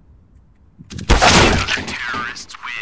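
A sniper rifle fires a single loud shot in a game.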